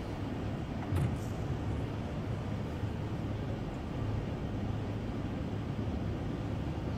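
A spacecraft engine rumbles low and steady.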